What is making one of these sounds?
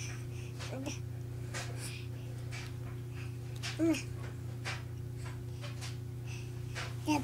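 A baby babbles and squeals close by.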